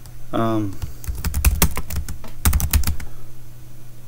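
Keys on a keyboard click rapidly as someone types.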